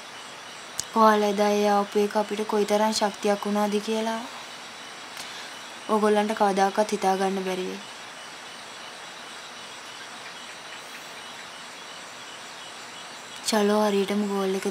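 A young woman speaks close by in a pained, pleading tone.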